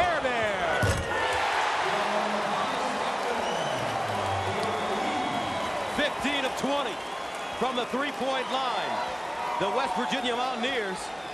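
A large crowd cheers and roars in an echoing arena.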